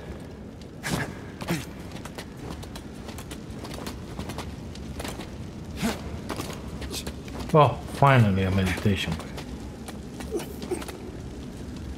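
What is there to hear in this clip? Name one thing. Hands grip and scrape on a rock wall during a climb.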